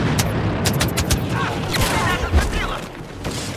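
Blaster guns fire in rapid bursts.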